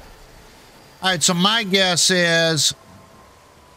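An elderly man speaks briefly into a close microphone.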